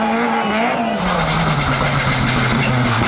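A rally car engine roars steadily as the car drives along.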